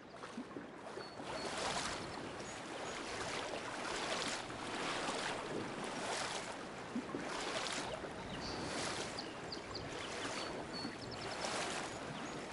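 Water rushes and splashes steadily nearby.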